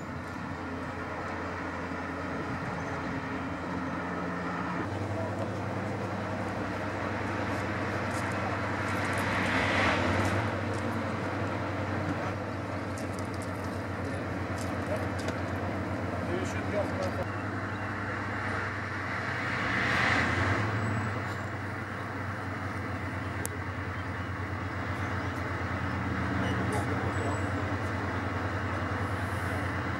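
Train wheels click over rail joints.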